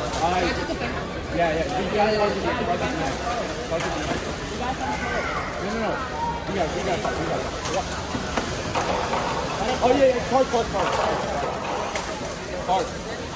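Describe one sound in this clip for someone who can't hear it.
A crowd of children and young people cheer and shout excitedly nearby in an echoing hall.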